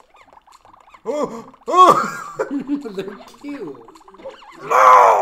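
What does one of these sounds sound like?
A cartoonish character voice yelps and cries out in short bursts.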